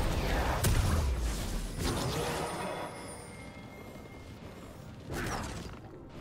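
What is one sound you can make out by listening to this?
Video game spells whoosh and crackle in quick bursts.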